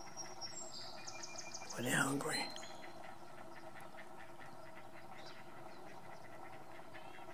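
Heron chicks chatter with quick, ticking begging calls.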